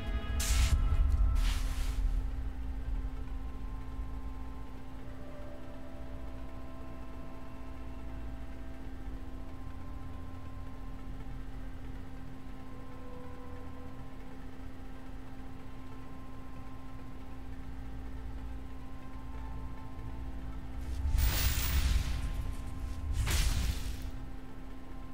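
Game music hums steadily.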